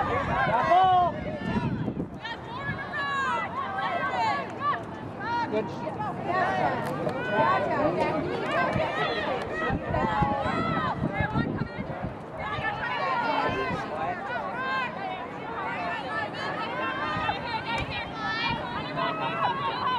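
Young women call out to each other across an open field.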